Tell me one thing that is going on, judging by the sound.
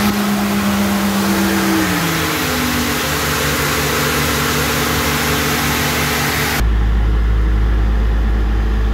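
A diesel engine runs loudly close by, its pitch dropping as it slows to a lower idle.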